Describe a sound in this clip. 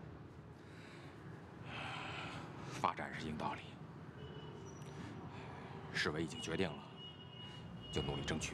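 A middle-aged man speaks calmly and earnestly up close.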